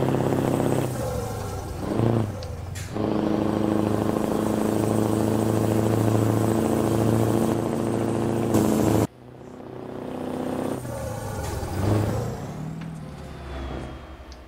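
A heavy truck engine drones steadily as the truck drives along.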